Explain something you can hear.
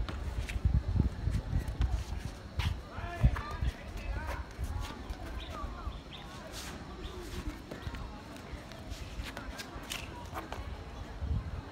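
Sneakers scuff and tap on a stone floor.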